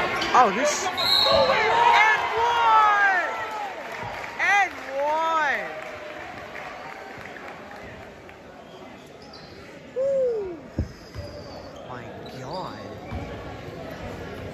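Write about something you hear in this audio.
Spectators murmur and cheer in a large echoing gym.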